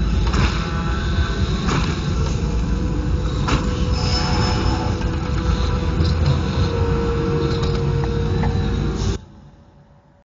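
A glowing magic portal hums steadily.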